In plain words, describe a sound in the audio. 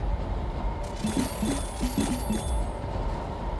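A chest opens with a sparkling chime.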